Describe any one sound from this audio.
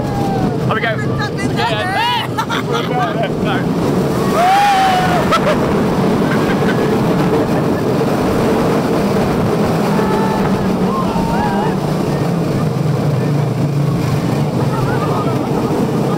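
A roller coaster train rumbles and rattles steadily along its track.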